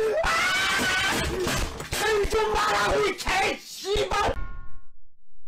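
A young man laughs loudly and excitedly through a microphone.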